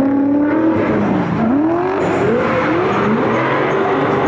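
Tyres squeal on the track.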